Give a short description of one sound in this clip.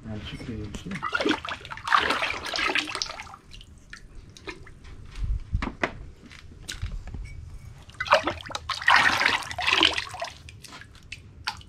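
Liquid glaze sloshes and splashes as a clay pot is dipped into a basin.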